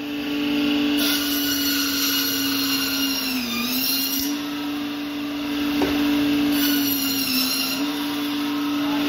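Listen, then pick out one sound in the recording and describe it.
A band saw blade cuts through frozen fish with a harsh grinding whine.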